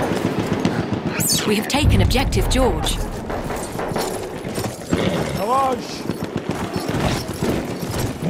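Hooves thud on sand as a horse gallops.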